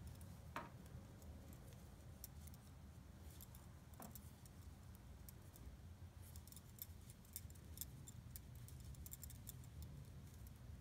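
Metal knitting needles click and tap together softly.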